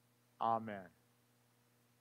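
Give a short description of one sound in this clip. A man's voice sings a short phrase in a large echoing hall.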